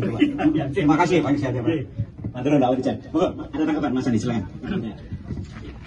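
An elderly man speaks into a microphone with animation, heard close up.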